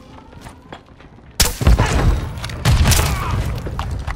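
A knife stabs into a body with a wet thud.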